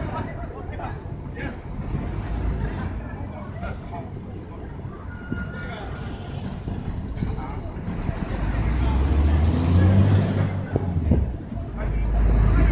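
A crowd of men and women talk and murmur outdoors at a distance.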